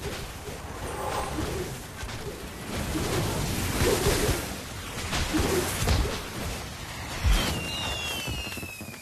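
Magic blasts and weapon blows clash in quick, noisy bursts.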